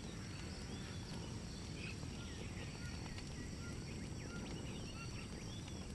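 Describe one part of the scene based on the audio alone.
A small fire crackles and roars softly.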